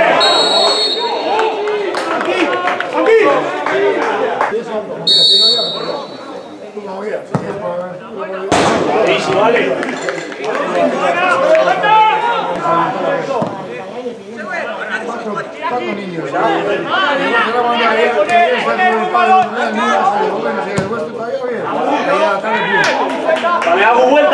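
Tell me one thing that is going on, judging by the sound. Men shout and call out to each other outdoors.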